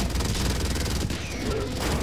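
Gunfire rattles in short bursts.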